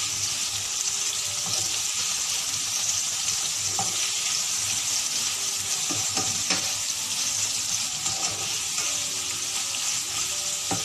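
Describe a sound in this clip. Onions sizzle steadily in hot oil.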